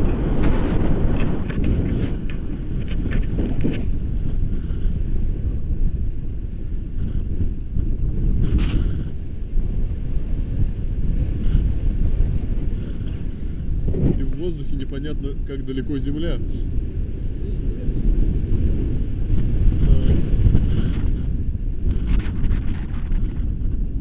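Wind buffets the microphone in flight.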